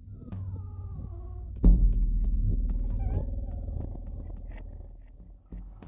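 A cat chews and laps food from a bowl.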